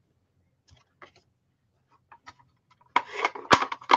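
A sheet of card is laid softly onto a table.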